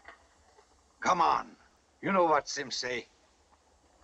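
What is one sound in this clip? A man speaks loudly and firmly nearby.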